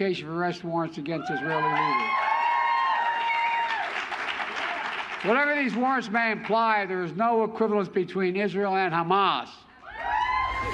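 An elderly man speaks firmly into a microphone.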